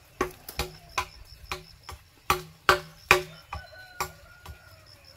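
A tool knocks sharply and repeatedly on wood close by.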